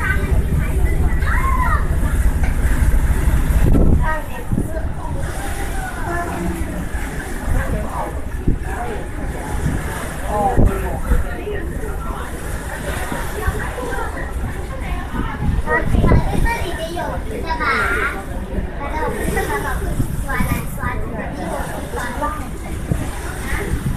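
Wind gusts across the microphone outdoors.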